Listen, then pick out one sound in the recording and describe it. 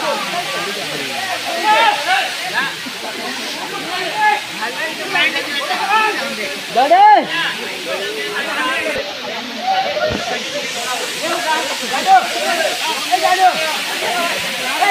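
A waterfall rushes and splashes steadily over rock.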